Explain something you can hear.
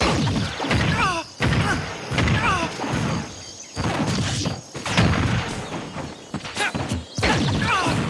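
Magic blasts whoosh and boom in a fighting game.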